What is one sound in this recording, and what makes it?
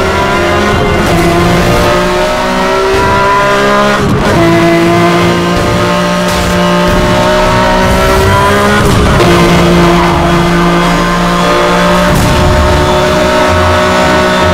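A sports car engine roars at high speed, its pitch climbing steadily and dropping sharply with each gear change.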